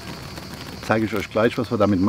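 A plastic bag crinkles in a man's hand.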